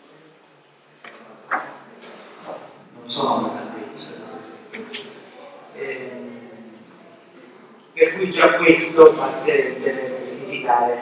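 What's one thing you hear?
A middle-aged man speaks into a microphone, calmly at first and then with more animation.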